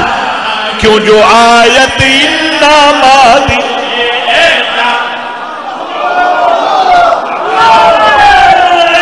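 Other men sing along in chorus.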